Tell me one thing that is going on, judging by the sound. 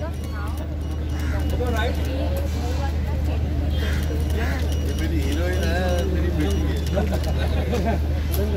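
A crowd of people talk and call out nearby, outdoors.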